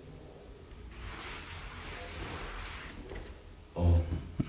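A man wipes a board with an eraser.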